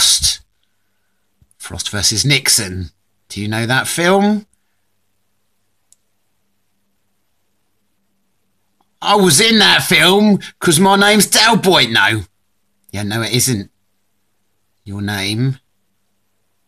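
A young man speaks calmly in short phrases.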